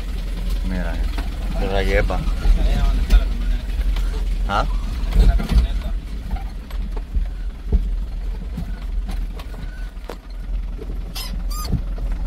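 A vehicle jolts and knocks over a rough, rocky dirt track.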